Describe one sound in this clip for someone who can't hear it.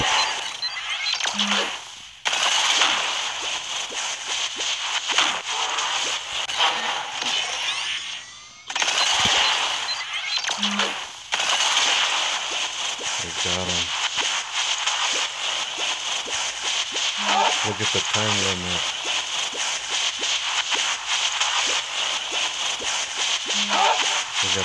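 A crackling energy beam hisses and buzzes steadily.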